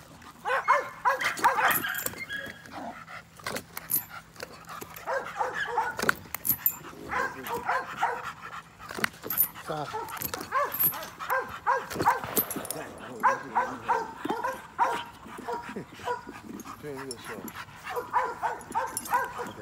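A dog growls and snarls while playing.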